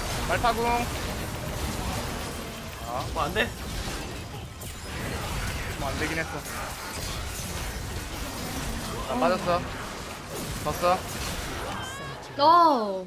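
Game spells and hits crackle and clash in a battle.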